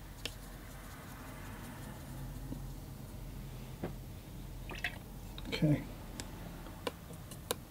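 A paintbrush taps and scrubs in a paint tray.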